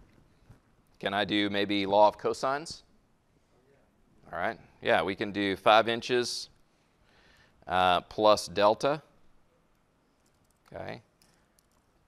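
A man lectures calmly into a microphone, with pauses.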